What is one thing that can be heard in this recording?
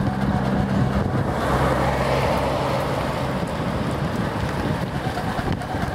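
A car drives along a road just ahead.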